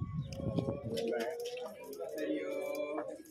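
Men chant together nearby.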